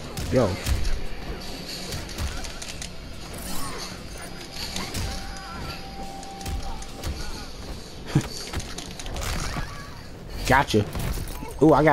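Heavy punches and kicks land with hard thuds.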